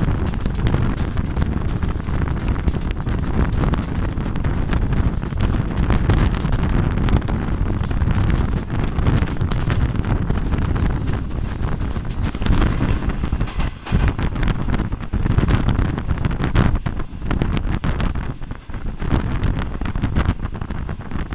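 Wind buffets loudly past an open train window.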